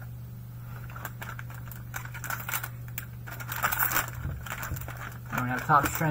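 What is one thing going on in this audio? Foil packaging crinkles and rustles in hands.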